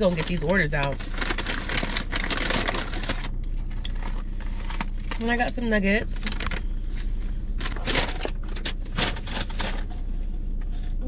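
A paper bag rustles and crinkles.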